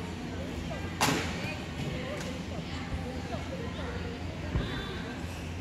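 Feet land with a sharp thud on a wooden balance beam.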